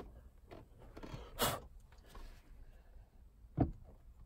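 Plastic parts click and knock as a steering wheel is handled.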